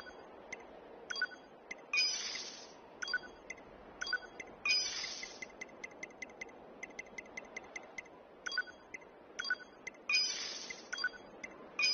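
Short electronic blips tick as a menu cursor moves.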